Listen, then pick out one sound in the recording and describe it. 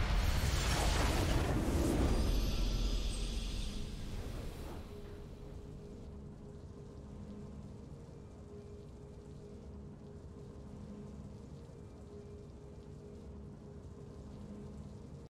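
A victory fanfare plays.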